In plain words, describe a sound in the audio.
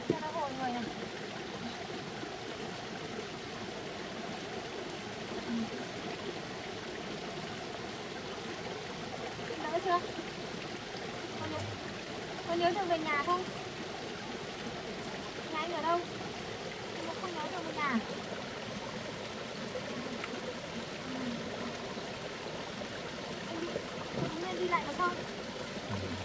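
A woman speaks softly and soothingly close by.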